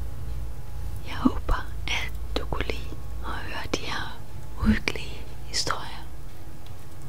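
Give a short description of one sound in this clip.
A woman whispers breathily close by.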